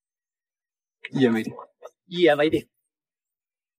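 A man speaks cheerfully nearby.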